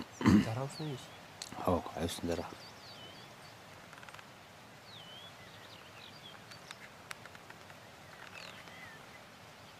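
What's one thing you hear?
A bird chirps softly among the leaves.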